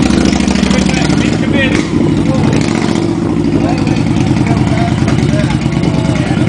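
A motorcycle engine idles with a steady rumble close by.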